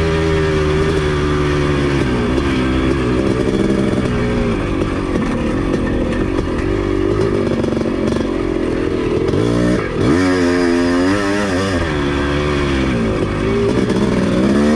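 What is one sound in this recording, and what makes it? A dirt bike engine revs loudly up close, rising and falling as it shifts.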